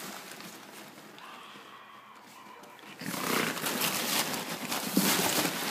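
A dog rustles through crinkling paper in a box.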